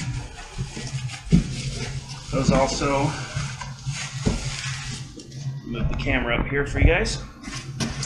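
Cardboard scrapes and thumps as a box is lifted.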